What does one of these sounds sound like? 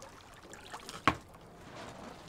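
A hard object knocks down onto a surface.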